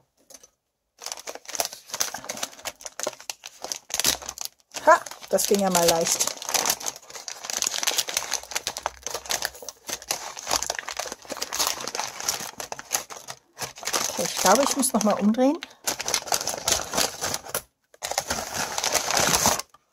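Thin plastic crinkles and rustles as hands fold and handle it.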